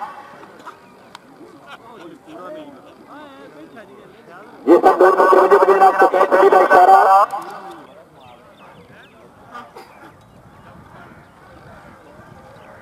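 Several men talk and call out nearby outdoors.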